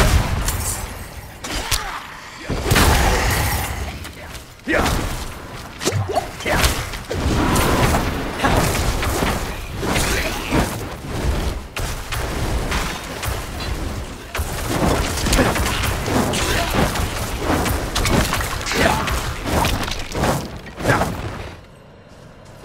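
Weapons clash and strike in a fierce fight.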